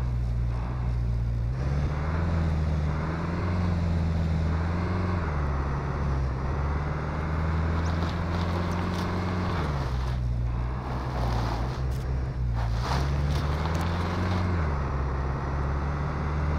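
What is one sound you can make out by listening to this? A car engine hums steadily, rising and falling in pitch as it shifts gears.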